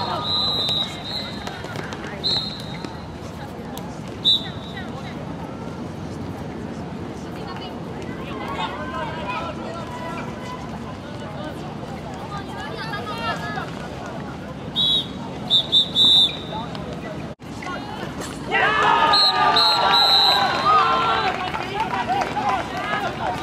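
Young men and women shout and call out to each other outdoors.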